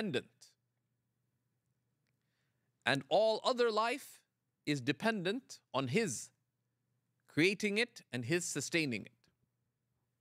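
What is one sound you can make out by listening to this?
A middle-aged man speaks calmly and expressively into a microphone, with pauses.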